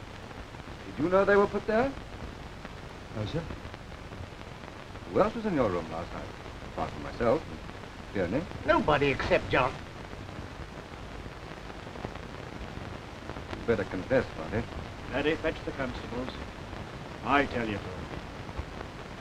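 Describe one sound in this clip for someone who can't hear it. Several adult men speak in turn, calmly and close by.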